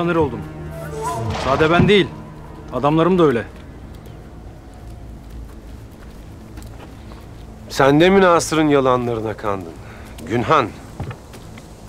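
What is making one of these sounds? A man speaks forcefully and loudly, close by.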